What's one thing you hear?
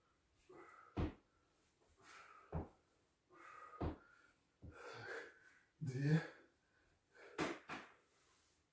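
Dull thumps land on a hard floor.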